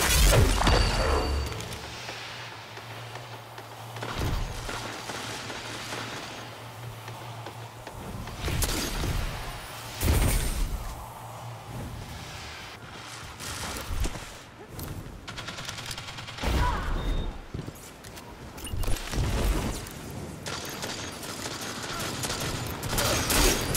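Gunshots crack out in short, loud bursts.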